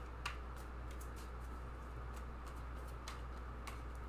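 Playing cards are shuffled and flicked.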